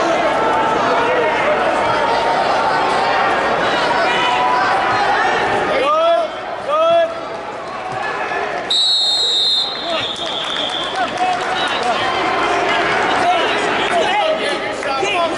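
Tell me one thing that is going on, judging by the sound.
A crowd chatters and shouts throughout a large echoing hall.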